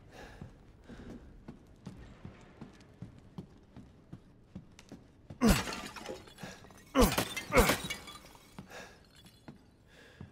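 Footsteps fall on a stone tile floor.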